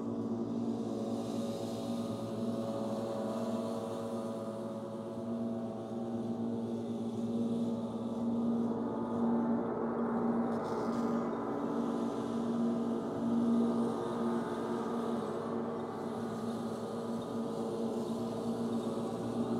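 A handheld gong hums with a low, shimmering drone that swells and fades.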